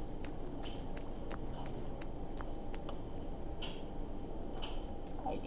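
Footsteps tap steadily on cobblestones.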